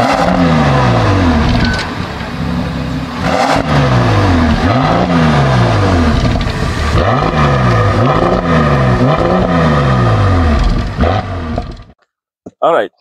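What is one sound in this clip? A car engine revs up and down loudly from its exhaust.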